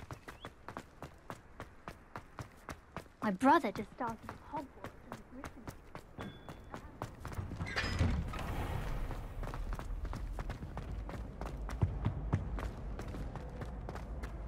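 Quick footsteps run on stone.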